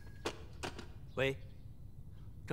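A young man speaks into a telephone.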